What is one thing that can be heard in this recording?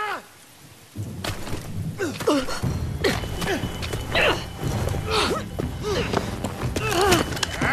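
Bodies scuffle and thump in a struggle.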